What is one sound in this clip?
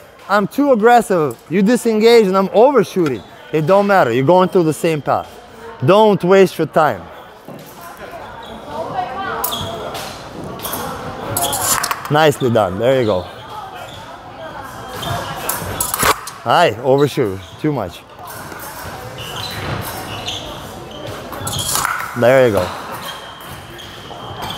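Fencing blades clink and clatter.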